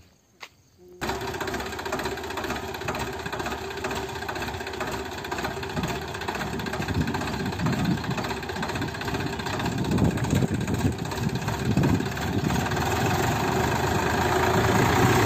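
A tractor engine runs loudly and steadily close by.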